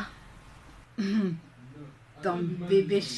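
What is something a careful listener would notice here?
A woman answers quietly over a phone.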